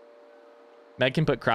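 A man speaks into a microphone with animation.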